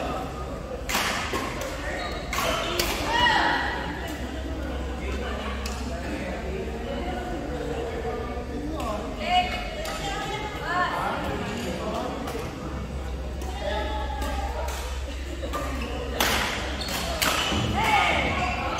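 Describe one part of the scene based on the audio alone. A shuttlecock is struck sharply with a racket.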